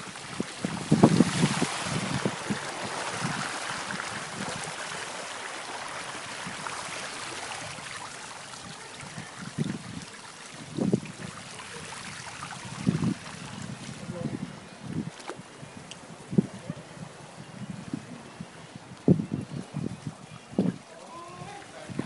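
Footsteps splash through shallow flood water.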